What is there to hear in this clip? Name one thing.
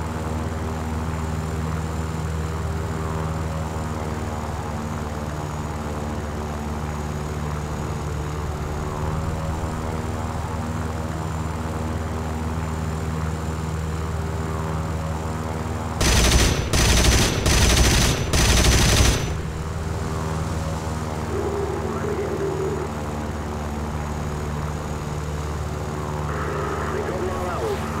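A piston-engined fighter plane's engine drones.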